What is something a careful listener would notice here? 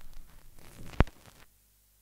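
A turntable's tonearm clicks sharply as it lifts off the record.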